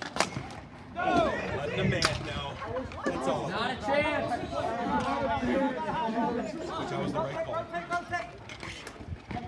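A crowd of young players shouts and cheers close by.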